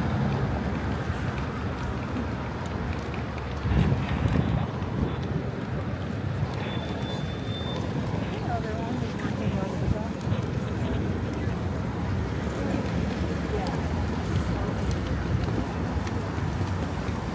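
Footsteps tap on the pavement.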